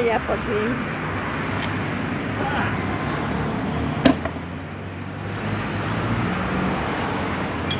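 A tyre thumps as it is rolled and set against a car.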